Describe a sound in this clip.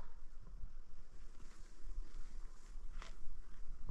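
Blankets rustle as a man shifts and sits up.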